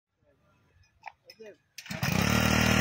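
A starter cord is yanked on a small petrol engine.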